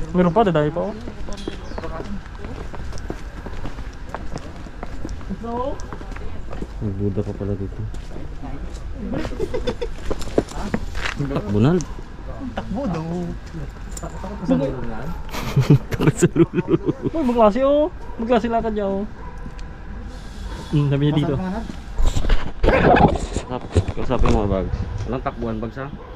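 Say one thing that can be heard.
Young men talk casually close by, outdoors.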